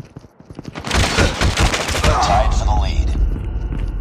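Gunfire rattles in a rapid, loud burst.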